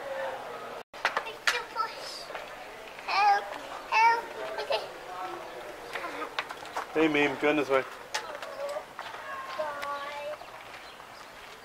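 A young child chatters excitedly in a high voice.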